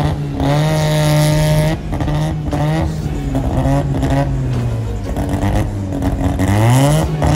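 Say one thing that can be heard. A car engine idles roughly and revs in loud bursts close by.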